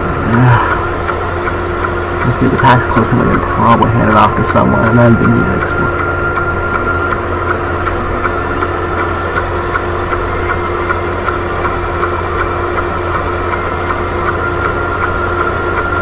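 A kart engine hums steadily as it races along a track.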